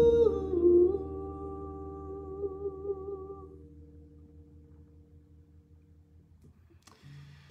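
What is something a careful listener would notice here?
A plucked stringed instrument rings out and fades.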